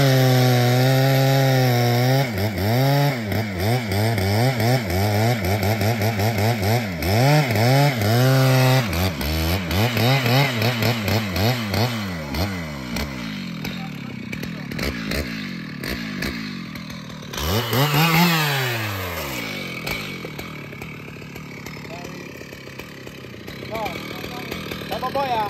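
A chainsaw engine roars loudly, revving up and down.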